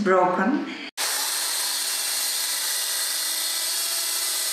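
A circular saw whines loudly as it cuts through wood.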